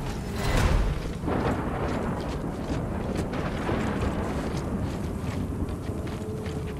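Heavy footsteps crunch through deep snow.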